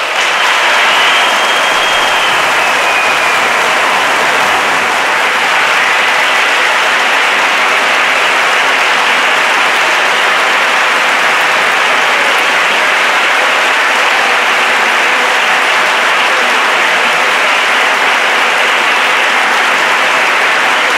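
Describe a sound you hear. A large audience applauds loudly and steadily in a big hall.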